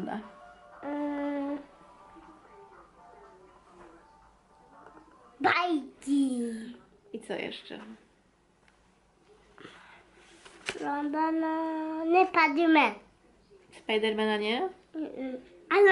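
A young woman speaks close by in a warm, playful voice.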